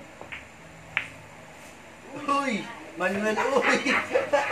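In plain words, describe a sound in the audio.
Billiard balls clack together and roll.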